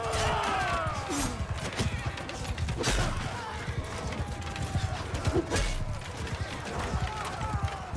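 Swords clash with sharp metallic strikes.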